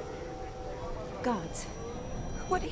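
A young woman speaks in a puzzled tone.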